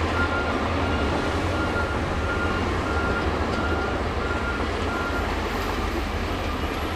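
Bulldozer tracks clank and squeal as they roll over dirt.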